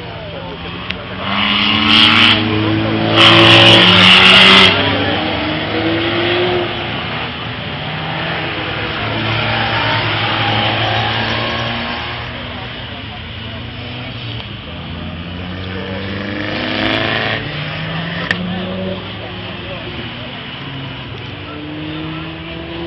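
Engines rise and fall in pitch as cars accelerate and shift gears.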